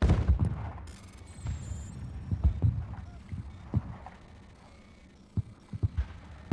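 Electronic beeps and bleeps sound in quick succession.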